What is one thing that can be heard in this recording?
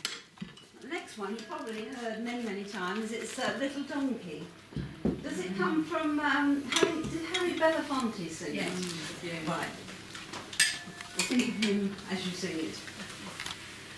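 An elderly woman talks to a small group, speaking with animation.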